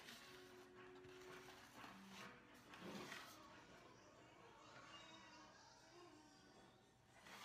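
A knife cuts softly through a frosted cake.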